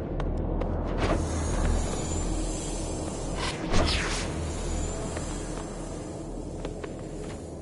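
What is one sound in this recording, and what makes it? A humming energy beam whooshes and rings.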